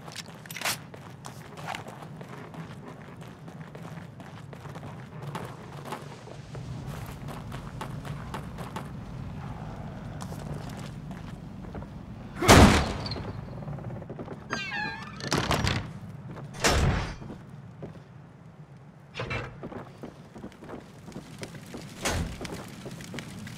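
Footsteps crunch on dry straw.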